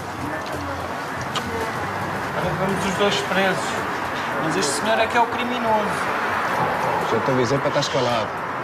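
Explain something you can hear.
Men talk nearby in low voices.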